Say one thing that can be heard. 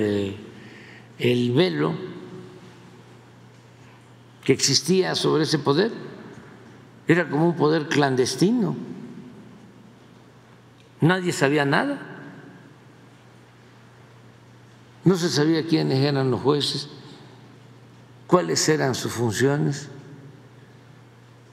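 An elderly man speaks calmly into a microphone in short phrases with pauses.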